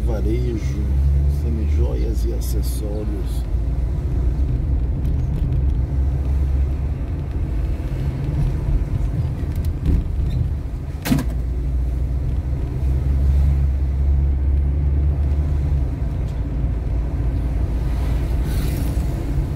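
Tyres roll on the road surface.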